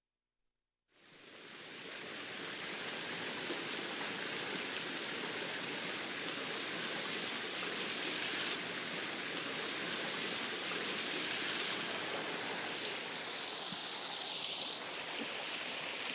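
Water splashes and pours steadily nearby.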